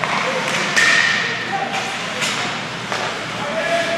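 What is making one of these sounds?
Hockey sticks clack sharply against the puck.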